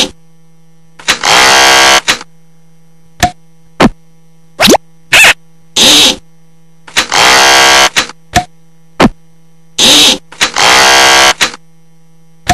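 A cartoon sawmill machine buzzes as it cuts logs.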